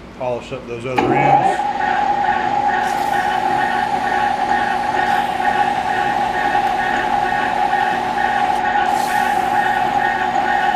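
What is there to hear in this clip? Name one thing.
A lathe motor starts and hums steadily.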